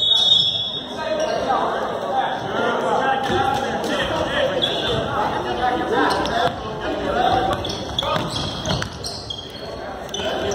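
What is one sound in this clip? Voices of spectators and players chatter and shout in an echoing gym.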